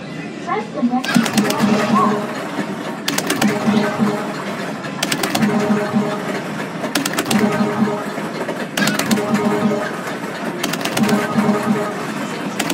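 An arcade game plays a bouncy, repeating electronic tune.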